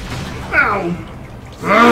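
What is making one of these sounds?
An explosion bursts with a loud crackle.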